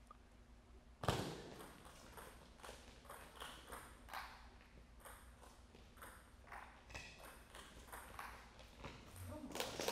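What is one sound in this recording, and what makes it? A ping-pong ball clicks back and forth on a table and paddles.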